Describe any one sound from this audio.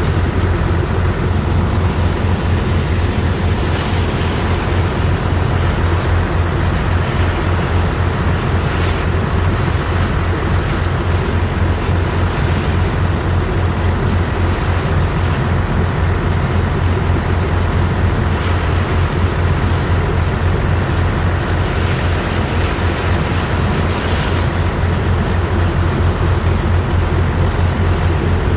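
A strong jet of water gushes and splashes into wet sand.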